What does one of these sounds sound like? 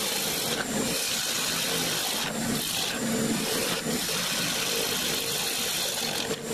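A chisel scrapes against spinning wood with a rough, hissing cut.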